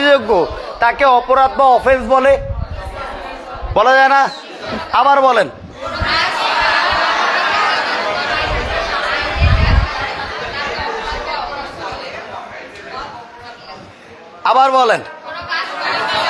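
A man sings loud, sliding notes nearby.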